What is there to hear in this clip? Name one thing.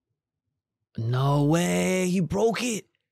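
A young man speaks with animation, close into a microphone.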